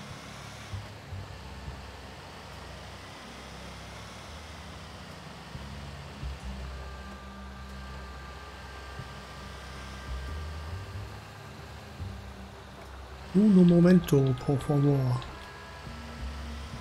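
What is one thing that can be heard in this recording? A heavy truck engine rumbles steadily as the truck drives along.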